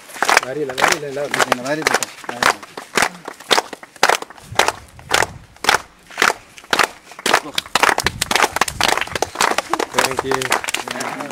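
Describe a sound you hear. People clap their hands in a steady rhythm.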